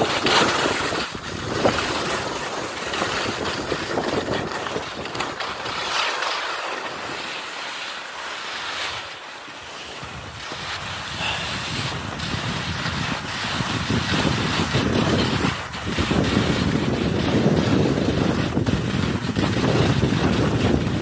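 Wind gusts across an open mountainside, rumbling against the microphone.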